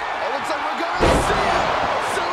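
A body slams hard onto a wrestling ring mat with a loud thud.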